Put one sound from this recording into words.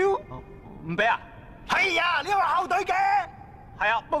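A young man shouts with animation.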